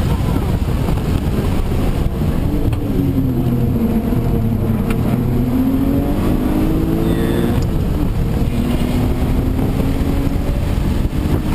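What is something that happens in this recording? Wind and tyre noise rush steadily around the car.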